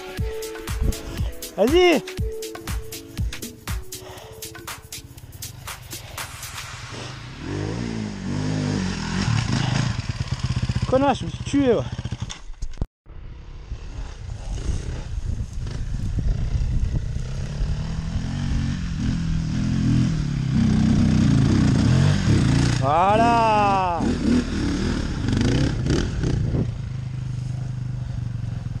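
A dirt bike engine rumbles and revs up and down close by.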